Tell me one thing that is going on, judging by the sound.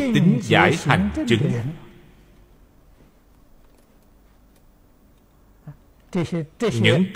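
An elderly man speaks calmly and close to a microphone, with pauses.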